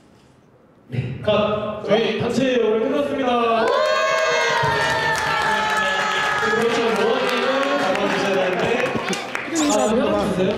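Young women cheer and scream with joy.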